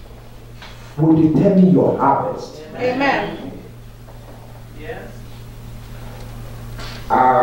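A man preaches through a microphone and loudspeakers in a large room, speaking with emphasis in bursts.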